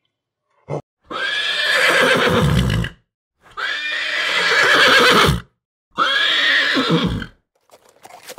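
Ponies whinny loudly.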